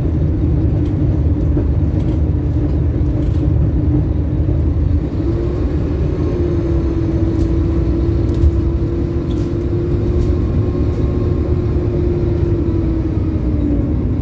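A bus engine hums and drones steadily from inside the bus.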